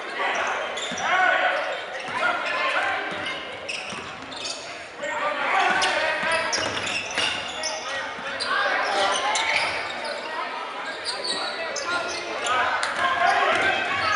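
A crowd of people cheers and shouts in an echoing hall.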